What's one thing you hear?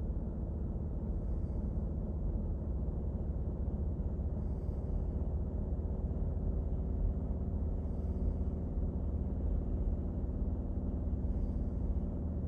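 A small machine hums steadily and low, close by.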